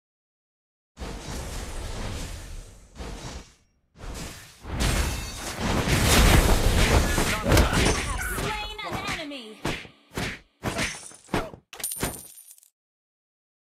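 Blasts and clashing effects of a video game fight ring out loudly.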